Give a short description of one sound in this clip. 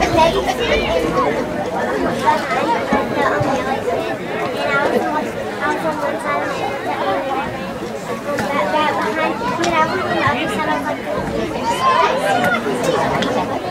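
A crowd of spectators cheers and shouts outdoors from a distance.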